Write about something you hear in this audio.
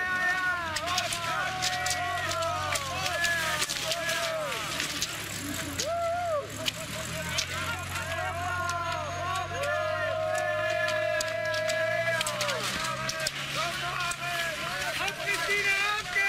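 Skis swish and scrape over snow.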